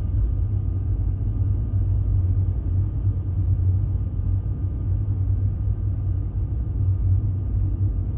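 Tyres hum steadily on the road.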